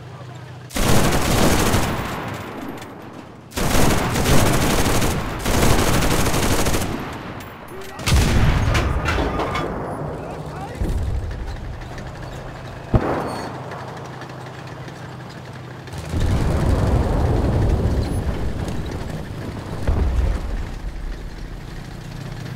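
A burning truck crackles and roars.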